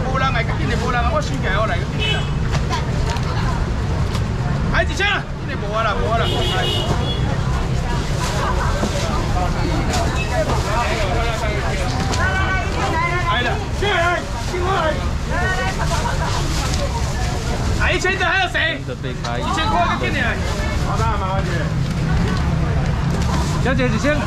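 A young man calls out loudly to customers nearby.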